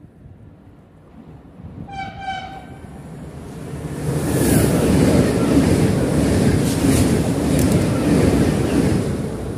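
A train approaches and rushes past with a loud roar of wheels on the rails.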